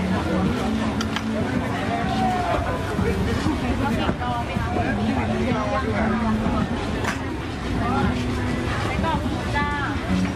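A plastic bag rustles as a woman fills it.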